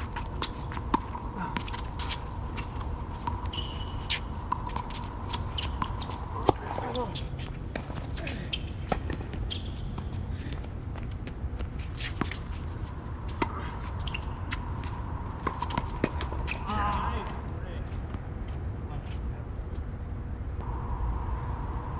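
Shoes squeak and scuff on a hard court.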